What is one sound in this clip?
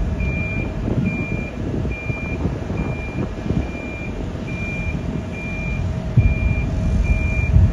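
A train rumbles low and steadily nearby.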